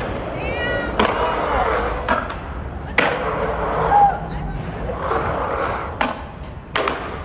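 A skateboard clacks sharply against a metal edge.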